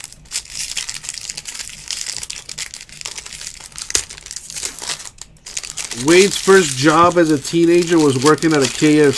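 A plastic wrapper crinkles and tears up close.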